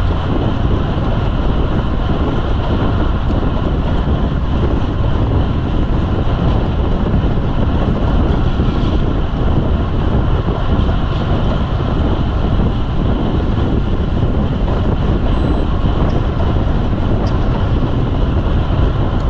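Wind rushes loudly past a moving cyclist.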